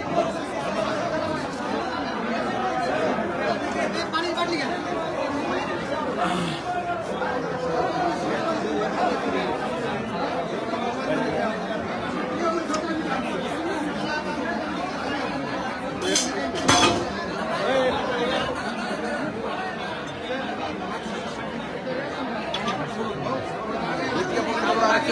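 A crowd of men chatter loudly all around, close by.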